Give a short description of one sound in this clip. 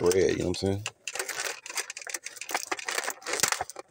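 A plastic container crinkles and rustles close by.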